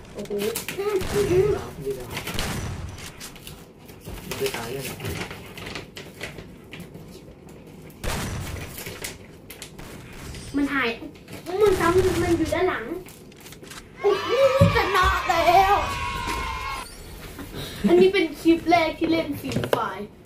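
A young girl talks excitedly and laughs close by.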